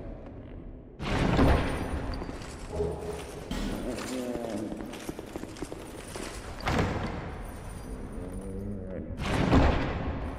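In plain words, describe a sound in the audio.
A heavy chest lid creaks open with a thud.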